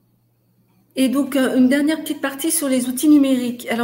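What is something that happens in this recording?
A middle-aged woman speaks calmly into a microphone over an online call.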